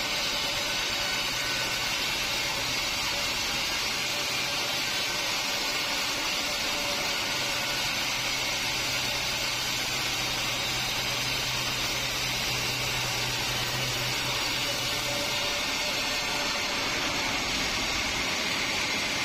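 A sawmill machine hums steadily.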